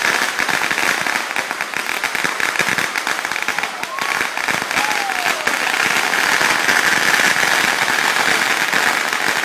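Fireworks crackle and pop rapidly, close by.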